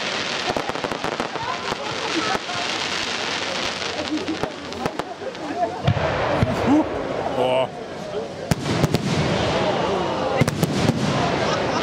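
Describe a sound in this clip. Fireworks bang loudly overhead.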